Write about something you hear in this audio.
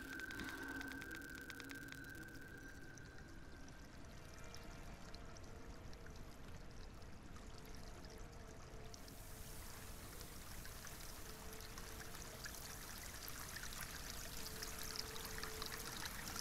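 Sand pours out of a sack with a soft, crackling hiss.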